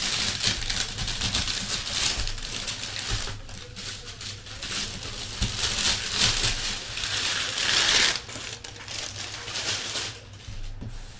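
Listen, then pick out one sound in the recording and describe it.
Plastic wrap crinkles and rustles up close.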